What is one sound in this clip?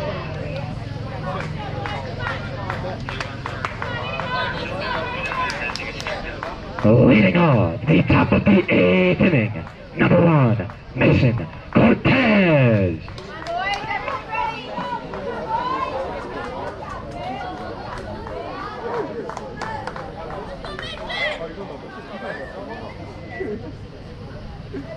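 Young men call out and chatter across an outdoor field.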